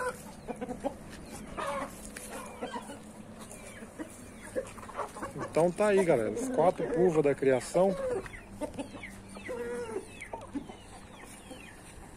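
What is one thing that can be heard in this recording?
Chickens cluck and squawk close by.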